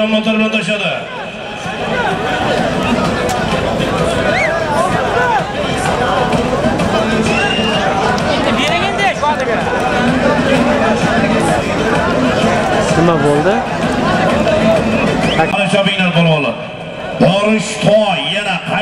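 A large crowd of men shouts and cheers outdoors.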